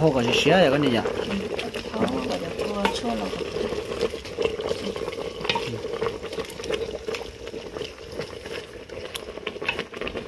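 A wooden stick stirs liquid in a metal pot, scraping and knocking against the sides.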